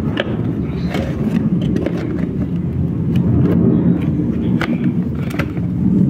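Plastic packaging crinkles as hands pull an item out.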